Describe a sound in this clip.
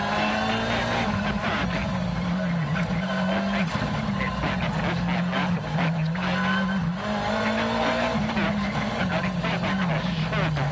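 Tyres hiss and grip on the road at speed.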